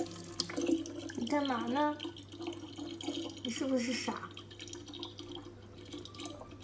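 A thin stream of water trickles from a tap into a plastic bottle.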